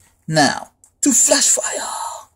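A foil card pack crinkles as it is handled.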